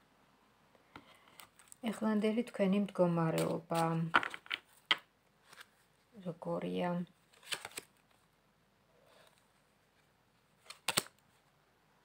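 Playing cards riffle and snap as they are shuffled.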